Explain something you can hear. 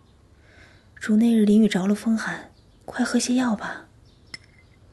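A young woman speaks softly and gently up close.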